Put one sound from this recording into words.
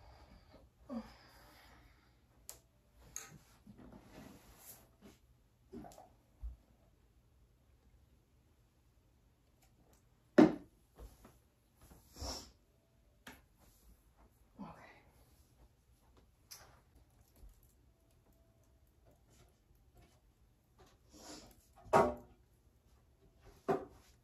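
Objects clatter and knock as they are picked up and set down.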